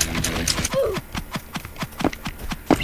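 A game sword strikes with quick, sharp hits.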